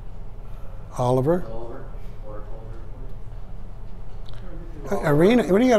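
A man speaks calmly from across an echoing room.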